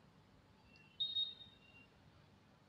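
A spoon clinks against a glass.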